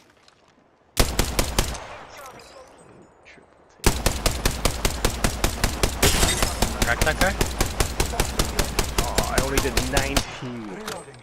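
An automatic gun fires rapid bursts close by.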